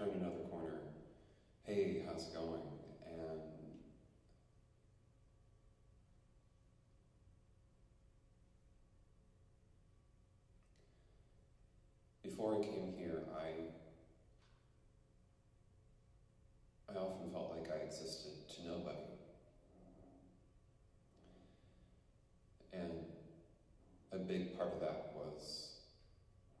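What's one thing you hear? A young man speaks calmly through a loudspeaker, with long pauses between phrases.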